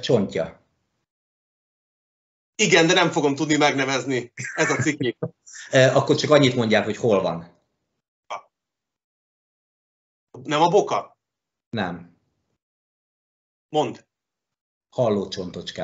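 A middle-aged man talks animatedly over an online call.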